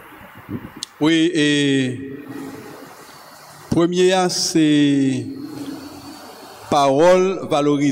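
A man sings loudly through a microphone in short phrases.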